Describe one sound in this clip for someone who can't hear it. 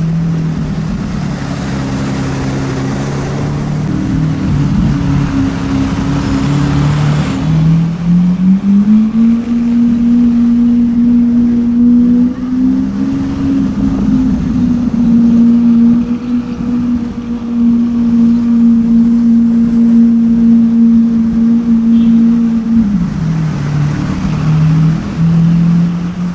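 A sports car engine rumbles deeply, rising and falling in pitch.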